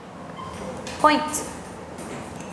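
A young girl answers in a small voice.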